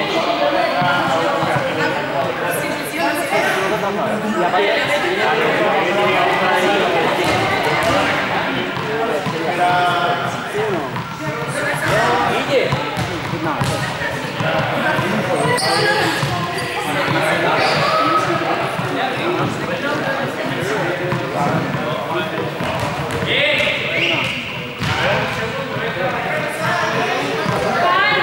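Young men talk in a large echoing hall.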